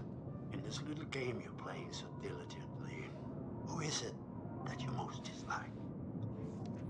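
A middle-aged man speaks calmly and close up, asking questions.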